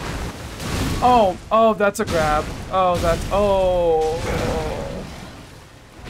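A large beast lets out long, wavering howls and roars.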